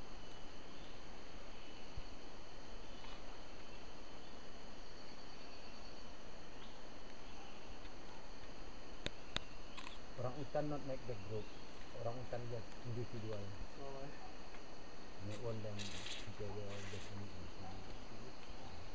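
Leaves and branches rustle as an ape hangs and moves in a tree.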